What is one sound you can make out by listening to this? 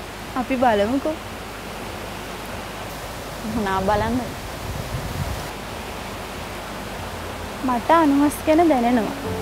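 A young woman sings a gentle melody.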